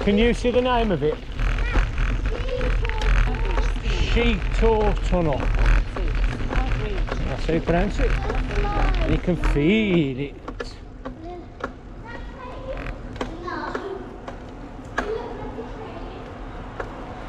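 Bicycle tyres crunch and roll over a gravel path.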